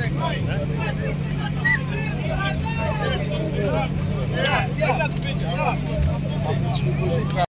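A truck engine rumbles steadily, close by.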